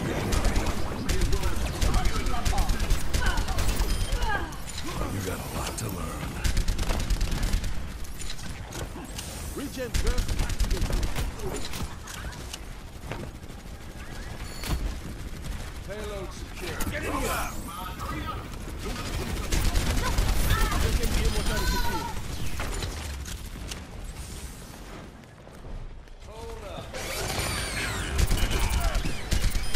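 Explosions and impacts in a video game boom.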